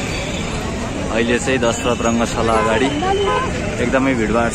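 A crowd of men talk and chatter outdoors nearby.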